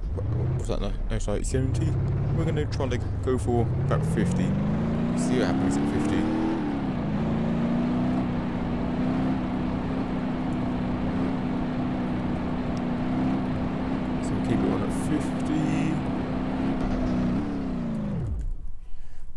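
A car engine revs up and drones steadily at speed.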